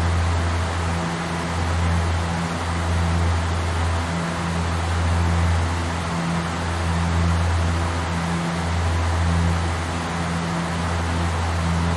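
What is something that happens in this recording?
Propeller engines drone steadily with a low hum.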